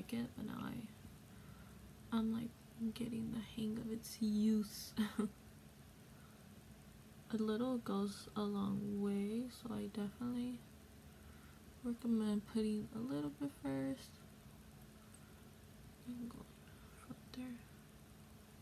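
A young woman talks calmly and close to the microphone.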